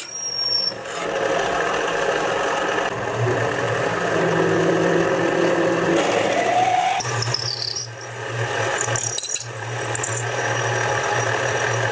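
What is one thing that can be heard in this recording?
A lathe spins with a steady hum.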